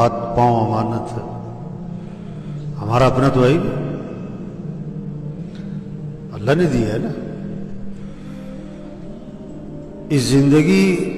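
A man recites in a slow, melodic, drawn-out voice.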